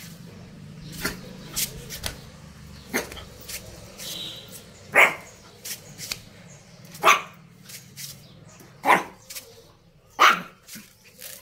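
A small puppy yips in short, sharp bursts.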